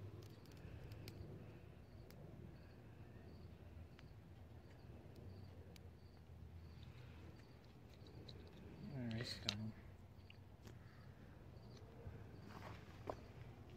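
Dry twigs crackle softly as small flames catch.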